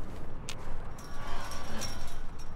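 A metal gate creaks and clanks shut.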